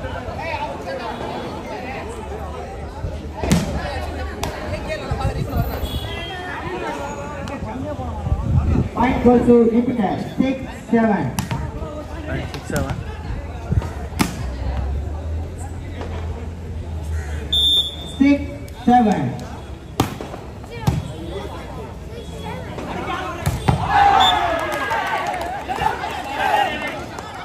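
A crowd of men chatters and calls out outdoors.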